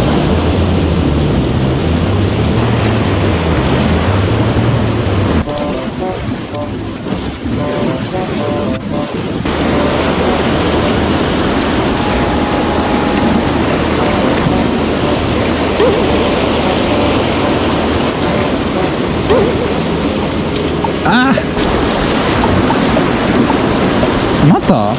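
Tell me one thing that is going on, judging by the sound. Waves wash and splash against concrete blocks by the sea.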